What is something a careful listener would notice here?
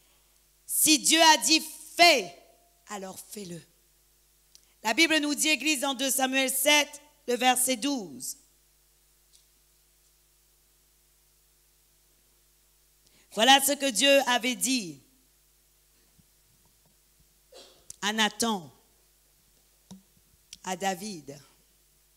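A woman speaks calmly into a microphone over loudspeakers in a large echoing hall, pausing often.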